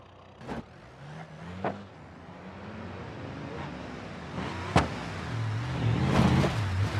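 A car engine hums quietly.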